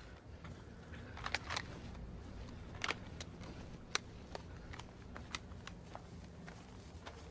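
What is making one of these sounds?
Footsteps and gear rustle as soldiers move through undergrowth.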